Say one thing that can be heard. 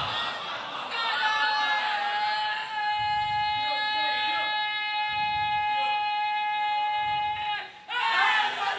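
A man chants in a long, wavering melodic voice through a microphone.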